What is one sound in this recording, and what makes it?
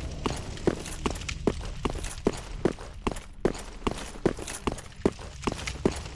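Armoured footsteps clank quickly and steadily on stone.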